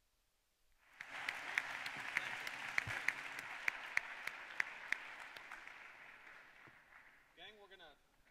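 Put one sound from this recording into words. An audience applauds, then the applause fades.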